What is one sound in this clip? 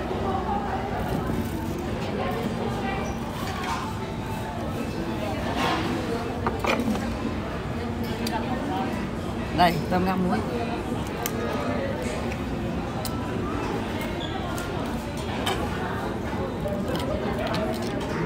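Utensils clink against plates.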